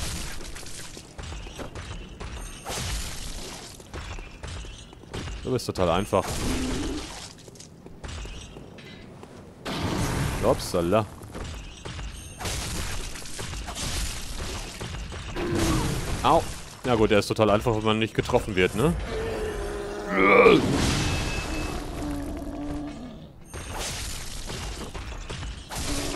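A heavy blade swings and strikes with wet thuds.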